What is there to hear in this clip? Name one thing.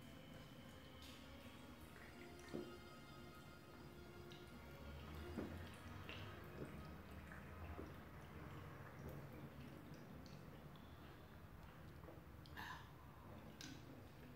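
A young woman gulps a drink.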